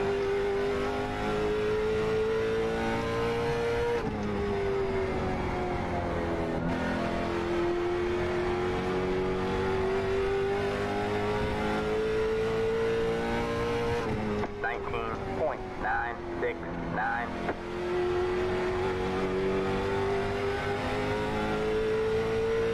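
A racing car engine drones loudly, rising and falling in pitch as it shifts gears.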